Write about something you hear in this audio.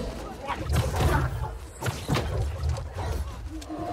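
Sword blows swish and clash in a fight.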